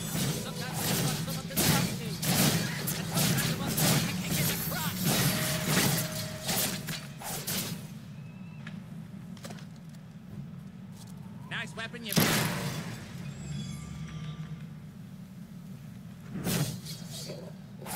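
Magic blasts crackle and boom in quick bursts.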